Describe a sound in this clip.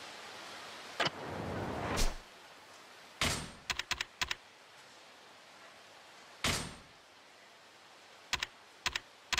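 Short electronic menu clicks and whooshes sound several times.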